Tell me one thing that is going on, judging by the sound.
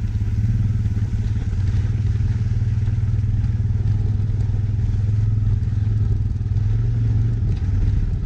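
Tyres roll over a bumpy dirt track.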